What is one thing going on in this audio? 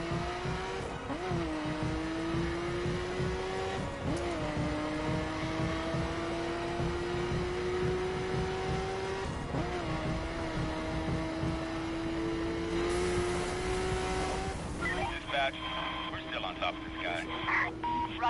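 A car engine roars and climbs in pitch, dropping briefly at each gear change.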